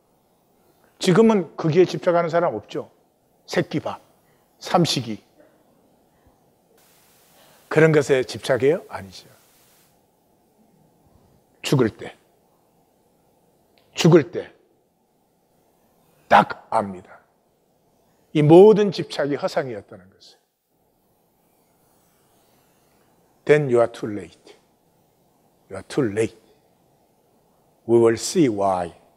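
An older man speaks slowly and earnestly into a microphone, with long pauses.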